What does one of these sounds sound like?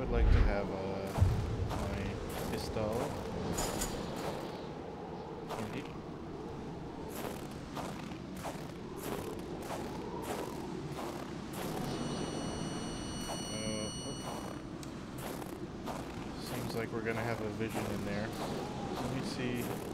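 Footsteps crunch quickly through deep snow.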